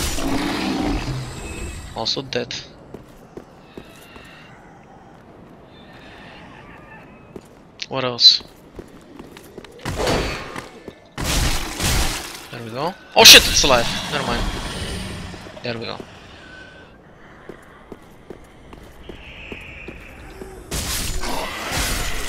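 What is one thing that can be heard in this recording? Armour clanks and footsteps thud as a warrior runs over stone.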